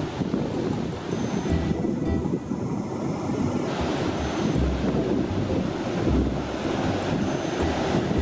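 Wind gusts loudly outdoors.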